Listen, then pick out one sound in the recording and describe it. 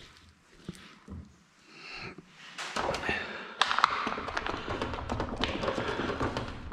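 Soft wet meat squelches and slaps between hands.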